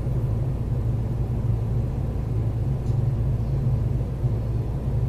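An electric commuter train hums with a low, steady drone.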